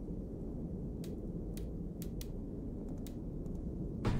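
Soft menu clicks tick as a selection moves.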